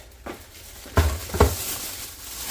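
A bag thumps down onto a countertop.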